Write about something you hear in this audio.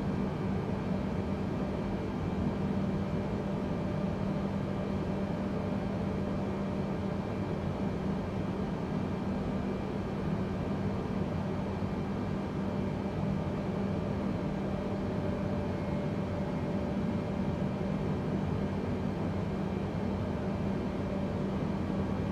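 Jet engines hum steadily from inside a cockpit in flight.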